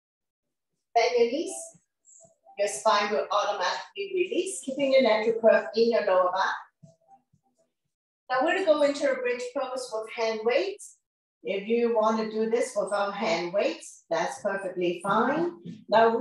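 A woman talks calmly, as if instructing, close to a microphone.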